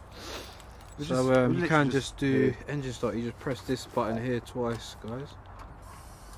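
A man speaks casually, close by.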